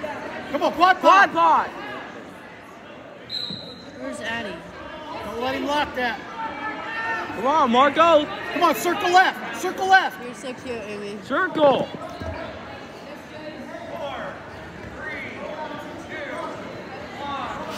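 Spectators shout and cheer loudly in a large echoing gym.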